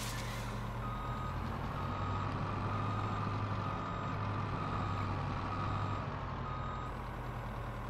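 A chainsaw head whines as it cuts through a tree trunk.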